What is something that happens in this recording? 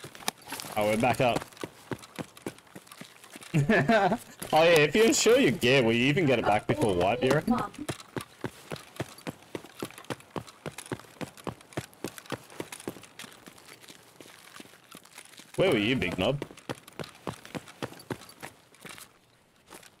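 Footsteps crunch steadily on gravel and concrete.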